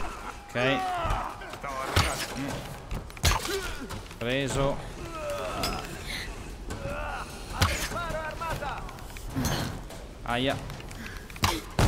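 A bowstring snaps as arrows are loosed.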